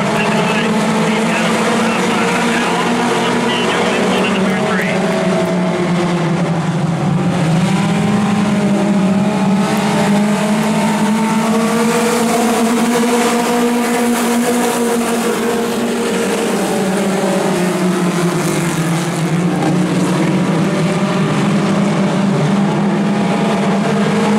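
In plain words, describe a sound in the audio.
Many race car engines roar loudly and rise and fall as the cars circle the track.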